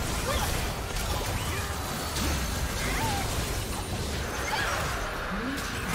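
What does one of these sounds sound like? Magic blasts and clashes crackle in a busy game battle.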